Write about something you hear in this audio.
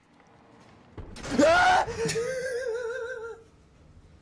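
A young man laughs loudly, close to a microphone.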